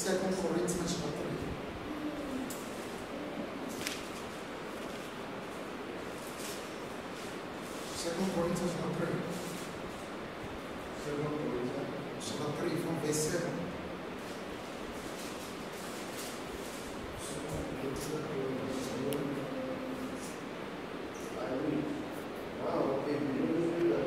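A young man speaks through a microphone in an echoing hall, pausing between phrases.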